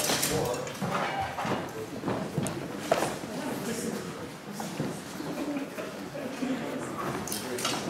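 Footsteps shuffle and thud on a wooden floor.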